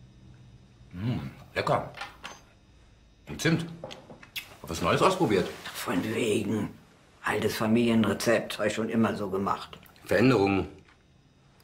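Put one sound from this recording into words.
A middle-aged man speaks calmly and closely.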